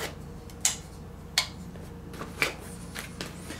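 A small switch clicks sharply a few times.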